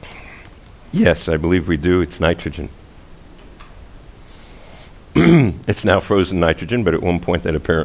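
A middle-aged man speaks calmly into a headset microphone, heard close.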